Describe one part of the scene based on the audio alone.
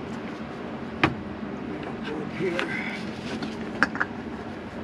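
Metal tools clink and knock against the underside of a car.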